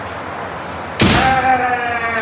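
A bamboo sword cracks sharply against protective armour.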